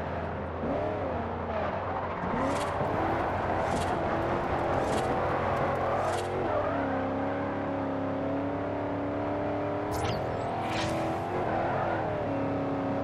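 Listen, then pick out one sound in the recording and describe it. Tyres squeal as a car drifts around bends.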